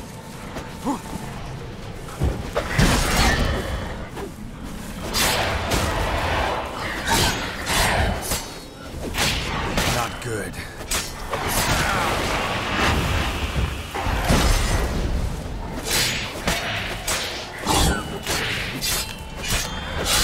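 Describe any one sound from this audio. Wolves snarl and growl.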